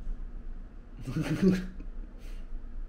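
A young man laughs briefly close by.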